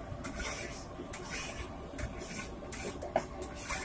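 A knife taps against a cutting board.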